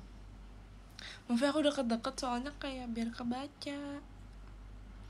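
A young woman speaks brightly and close to the microphone.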